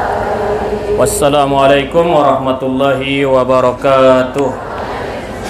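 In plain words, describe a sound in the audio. A man chants loudly through a microphone and loudspeaker in an echoing hall.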